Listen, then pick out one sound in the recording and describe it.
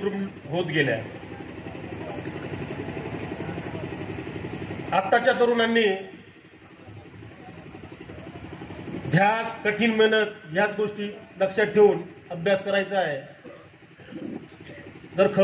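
A man gives a speech loudly through a microphone and loudspeakers.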